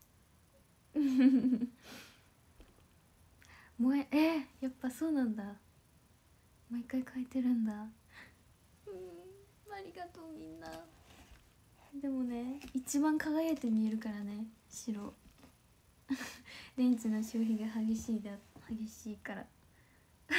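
A young woman talks softly and cheerfully close to a microphone.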